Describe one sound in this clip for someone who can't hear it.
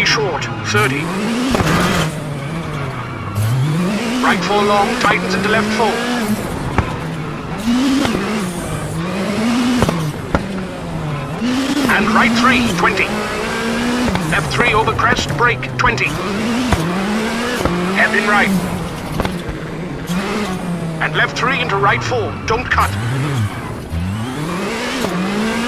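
A rally car engine revs hard, rising and dropping in pitch with each gear change.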